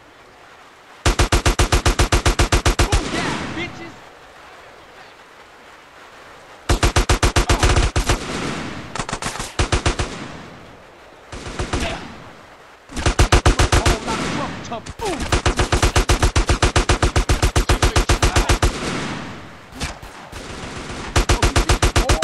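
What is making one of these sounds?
A machine gun fires rapid bursts of shots.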